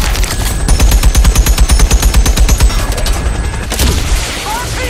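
A helicopter's rotor thumps rapidly and loudly.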